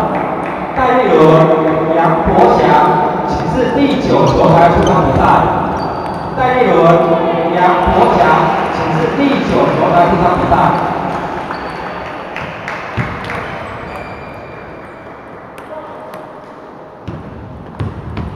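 A table tennis ball clicks back and forth in a large echoing hall.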